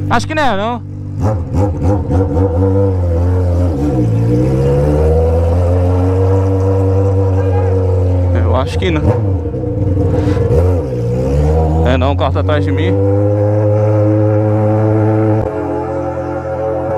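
An inline-four Honda Hornet with a straight-pipe exhaust accelerates and cruises along a street.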